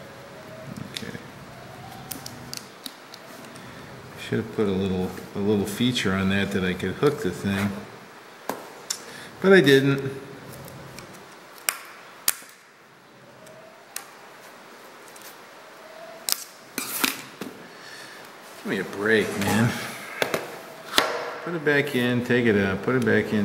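Small metal parts click and tap against metal.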